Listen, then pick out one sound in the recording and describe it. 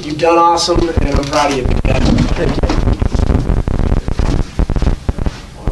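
A chair creaks and rolls as a man stands up.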